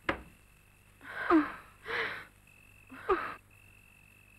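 A young woman speaks in a frightened voice nearby.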